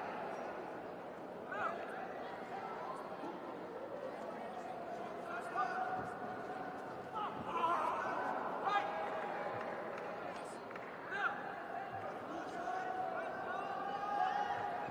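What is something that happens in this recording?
A large crowd cheers and whistles in an echoing arena.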